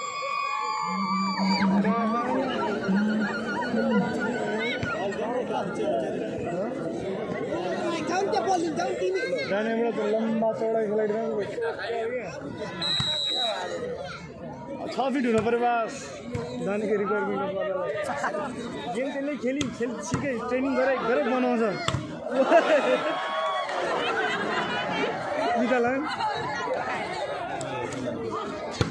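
A large outdoor crowd shouts and cheers.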